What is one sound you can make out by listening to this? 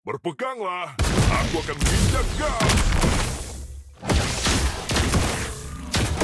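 Magic blasts whoosh and crackle in quick bursts as fighters clash.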